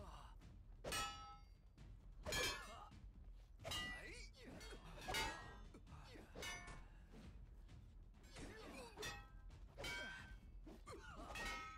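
Metal weapons clash and ring in repeated sudden strikes.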